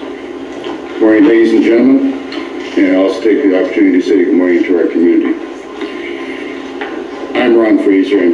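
An older man speaks steadily through a television loudspeaker.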